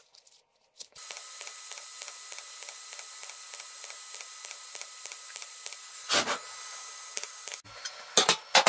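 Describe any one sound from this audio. An electric welding arc crackles and hisses steadily.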